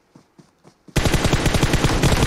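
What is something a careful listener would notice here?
A rifle fires in a rapid, rattling burst.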